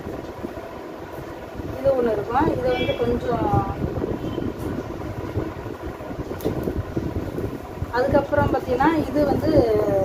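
Fabric rustles and swishes as cloth is handled and folded.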